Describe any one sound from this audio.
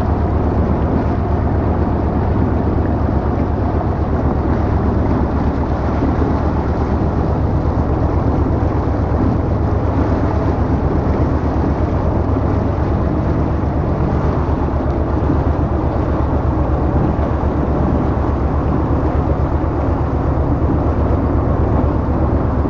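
A motorboat engine drones at speed.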